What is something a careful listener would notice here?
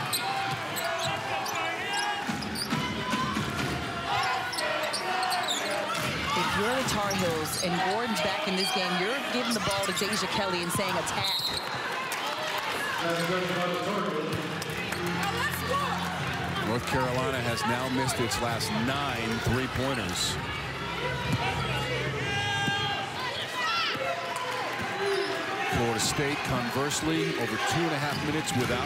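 Sneakers squeak sharply on a hardwood floor.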